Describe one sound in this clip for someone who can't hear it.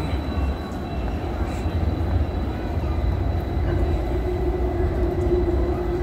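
A suitcase's wheels rumble over a hard floor.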